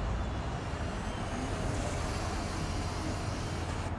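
A hovering racing craft hums low and steady.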